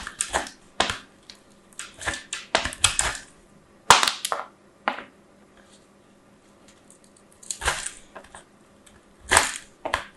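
Soap scrapes against a grater in short rasping strokes.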